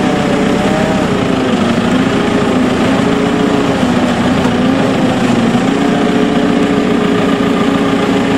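Hydraulic machinery whines as heavy metal arms swing round.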